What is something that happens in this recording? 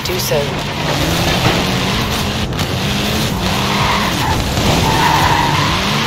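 A rally car engine roars and revs loudly.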